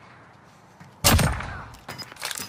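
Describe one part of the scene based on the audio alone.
A scoped rifle fires a single shot.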